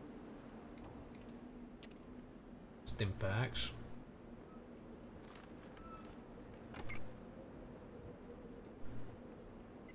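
Short game interface clicks sound as menus open and close.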